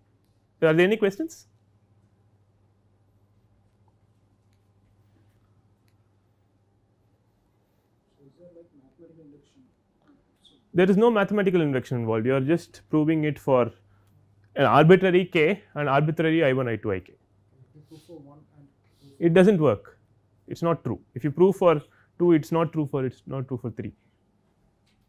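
A man lectures calmly through a clip-on microphone, pausing often.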